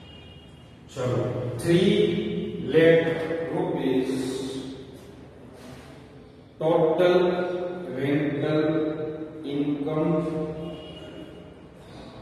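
A middle-aged man speaks steadily, close by.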